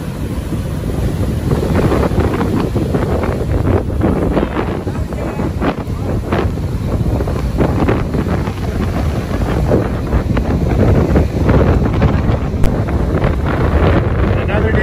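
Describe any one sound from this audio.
Strong wind blows across the microphone.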